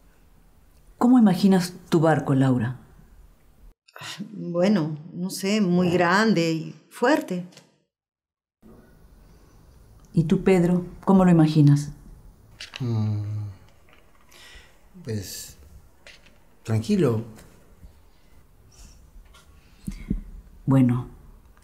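An elderly woman asks questions calmly, close by.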